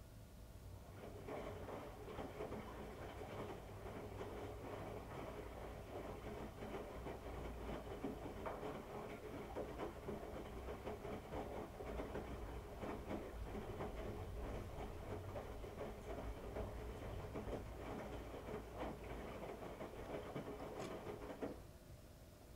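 Wet laundry thumps and sloshes inside a spinning washing machine drum.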